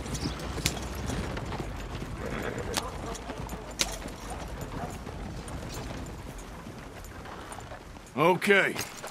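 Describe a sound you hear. Wagon wheels rumble and creak over the ground.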